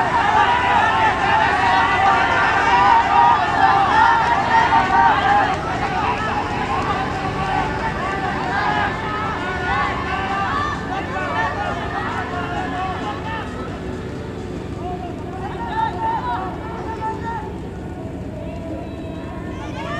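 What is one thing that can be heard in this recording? A crowd of spectators cheers and shouts loudly, then slowly quietens.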